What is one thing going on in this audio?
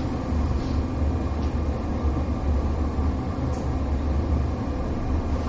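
A man speaks calmly to a room.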